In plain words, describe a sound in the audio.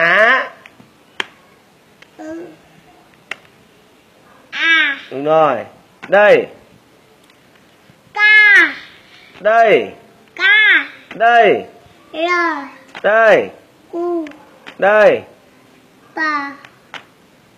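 A small boy calls out syllables in a high voice, close by.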